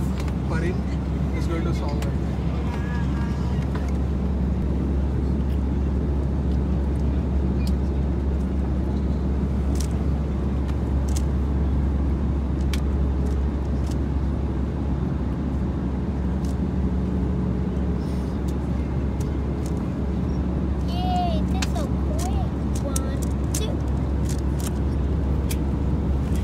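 A steady low roar of aircraft engines drones on.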